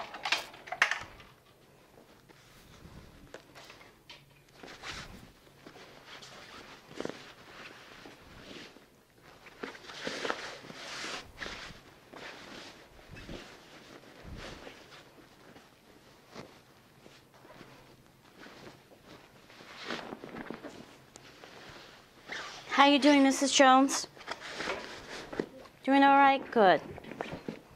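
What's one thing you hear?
Bed sheets rustle and flap as they are pulled and tucked.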